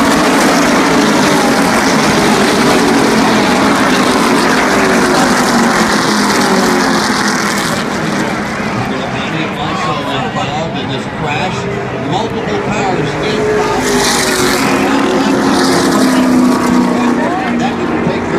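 Race car engines roar loudly around the track.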